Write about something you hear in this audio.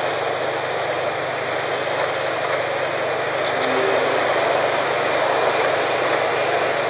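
A cold wind blows steadily through falling snow.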